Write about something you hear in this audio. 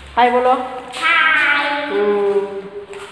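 Children call out in high voices.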